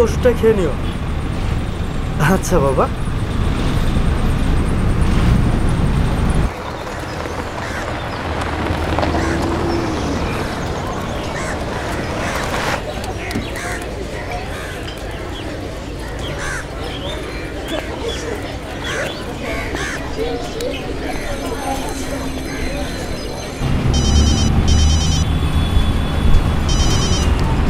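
A bus engine rumbles low and steady.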